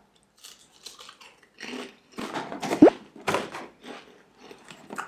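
Crisps crunch as a young man chews.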